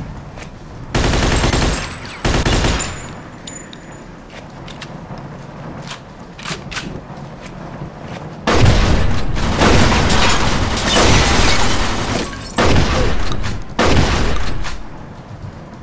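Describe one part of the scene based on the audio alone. A submachine gun fires loud rapid bursts that echo through a large hall.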